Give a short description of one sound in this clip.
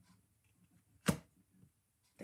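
A card taps down onto a table.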